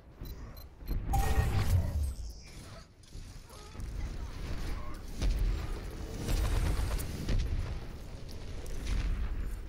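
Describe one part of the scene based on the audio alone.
Video game gunfire and blasts crackle in quick bursts.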